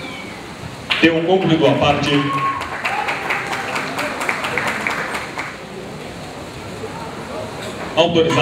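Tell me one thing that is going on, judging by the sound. A crowd cheers and shouts in a large arena.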